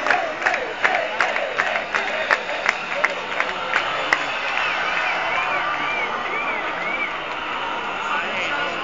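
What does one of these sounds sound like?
A large crowd cheers and shouts in a big, echoing space.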